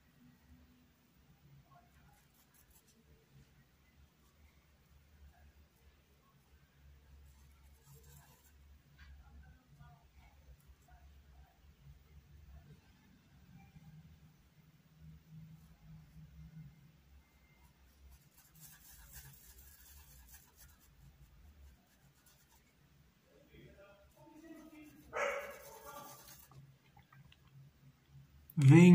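A brush softly strokes paint onto fabric.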